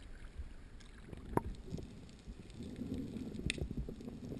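Water bubbles and gurgles underwater.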